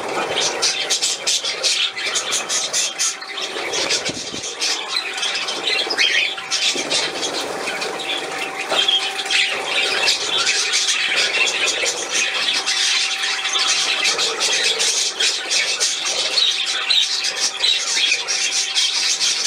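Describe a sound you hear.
Budgerigars chirp and chatter.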